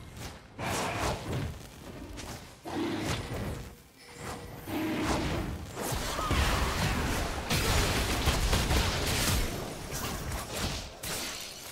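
Magic spells whoosh and burst in a fight.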